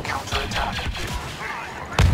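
An explosion bursts with crackling sparks.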